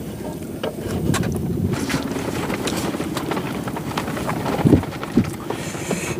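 Tent fabric rustles as someone moves inside.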